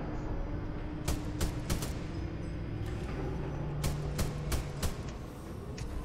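Gunshots crack from a game in quick bursts.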